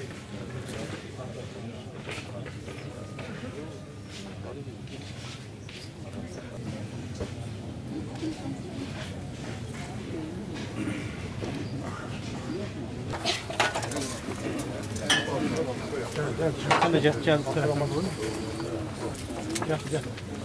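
A crowd of people murmurs quietly outdoors.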